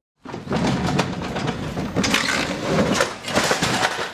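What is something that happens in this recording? A heavy load crashes off a truck onto the ground.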